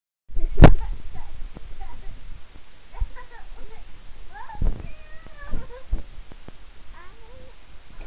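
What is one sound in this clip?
A young girl laughs and squeals close by.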